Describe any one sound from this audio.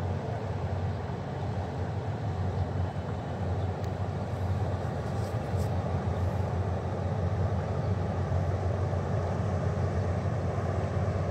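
A ship's engine rumbles steadily as a riverboat glides past.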